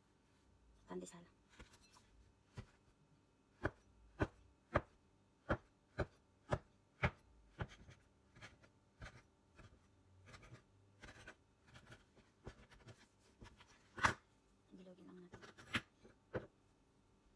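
A metal blade chops down on a board with sharp knocks.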